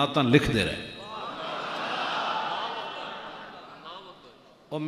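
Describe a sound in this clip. A crowd of men calls out together in response.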